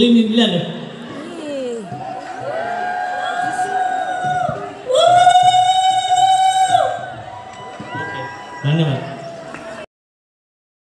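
A group of women sings loudly close by.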